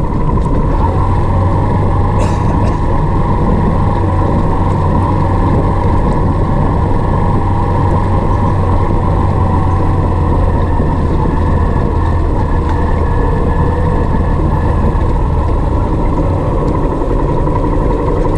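Tyres rumble over a rough dirt track.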